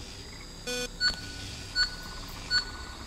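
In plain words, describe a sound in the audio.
A short chime rings out three times.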